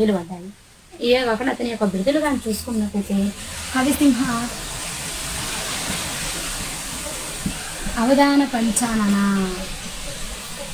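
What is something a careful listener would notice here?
A woman speaks close by, in a lively sing-song voice.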